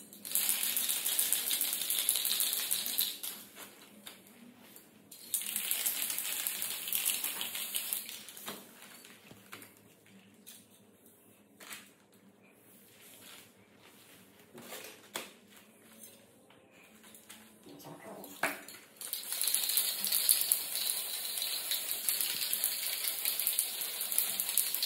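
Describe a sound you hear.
A spray can hisses in short bursts close by.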